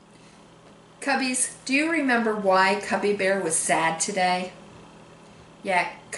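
A woman speaks warmly and clearly, close to a microphone.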